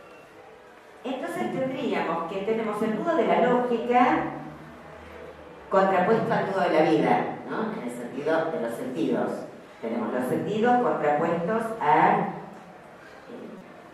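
A middle-aged woman speaks with animation into a microphone through a loudspeaker.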